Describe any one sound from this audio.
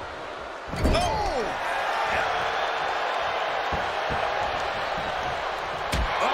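Blows thud as wrestlers strike each other.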